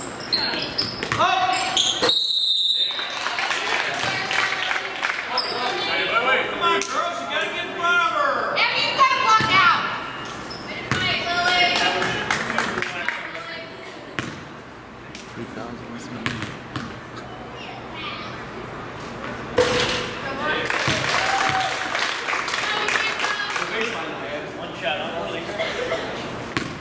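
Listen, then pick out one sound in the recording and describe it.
A crowd of spectators cheers and chatters in a large echoing gym.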